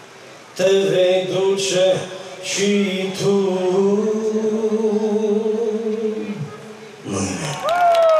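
A young man sings into a microphone, his voice loud and close through speakers.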